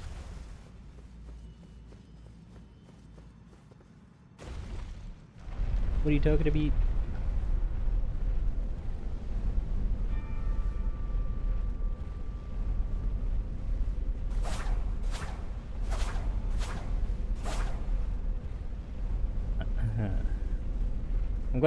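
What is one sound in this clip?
Footsteps run across a stone floor in a large echoing hall.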